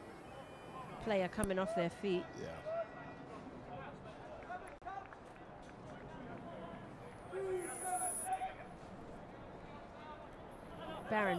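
Men shout short calls outdoors.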